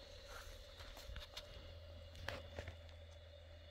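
Light taps and clicks sound close by on a metal griddle.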